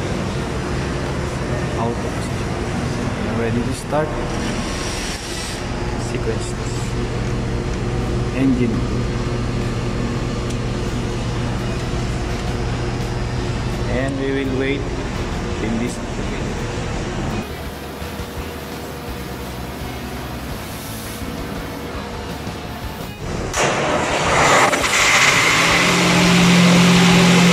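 Machinery hums steadily in a large room.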